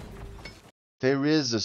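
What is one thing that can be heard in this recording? A young man speaks loudly and close into a microphone.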